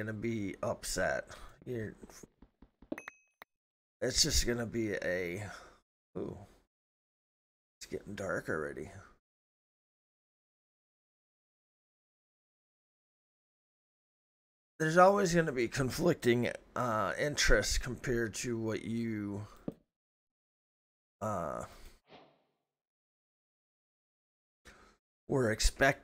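A middle-aged man talks with animation into a close microphone, pausing often.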